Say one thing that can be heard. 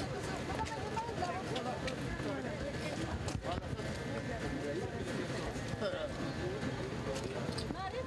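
A crowd of women and men chatter and call out excitedly nearby.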